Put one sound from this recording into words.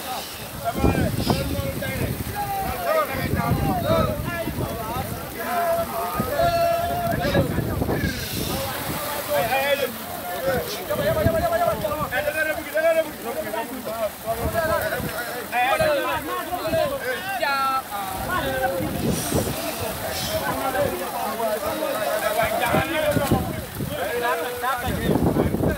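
Fish thrash and splash in the water inside a net.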